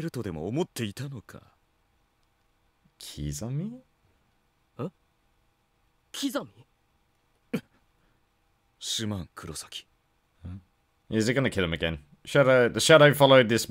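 A young man speaks with animation close to a headset microphone, reading out and voicing lines.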